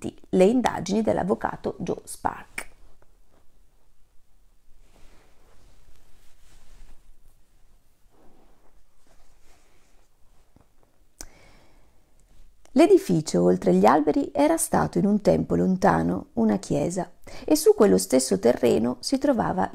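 A woman speaks calmly and close by, with a long pause.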